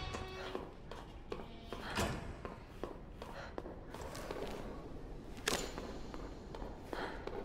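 Heeled boots click on a hard floor in footsteps.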